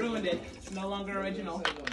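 Fizzy soda pours and splashes into a jar of liquid.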